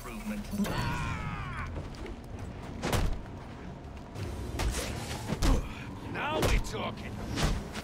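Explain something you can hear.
Men grunt and cry out in pain.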